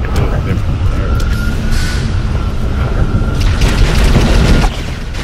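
Gunshots crack in sharp bursts in a game.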